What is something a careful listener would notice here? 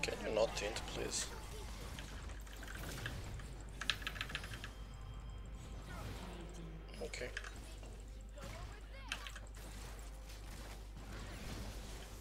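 Game combat effects whoosh, clash and crackle.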